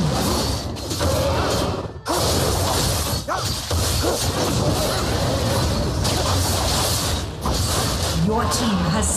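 Game battle effects clash and whoosh loudly.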